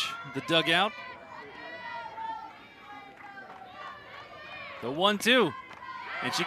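A crowd murmurs and cheers.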